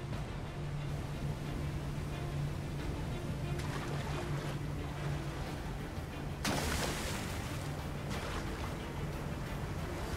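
A waterfall roars nearby.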